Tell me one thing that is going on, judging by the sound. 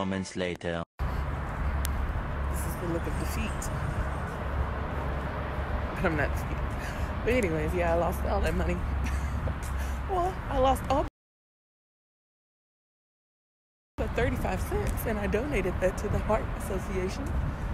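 A young woman talks with animation close to a phone's microphone.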